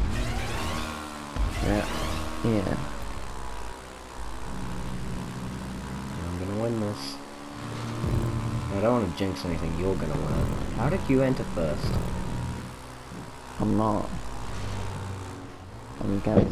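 A quad bike engine drones steadily, rising and falling in pitch as it speeds along.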